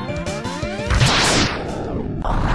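A video game blaster fires a charged shot.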